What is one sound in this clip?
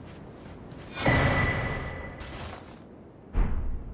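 A game's chime sounds as items are picked up.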